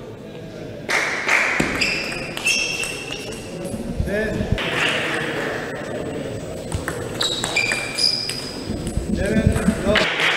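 Shoes squeak on a sports floor.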